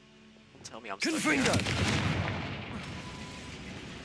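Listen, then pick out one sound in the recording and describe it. A loud magical whoosh rushes past.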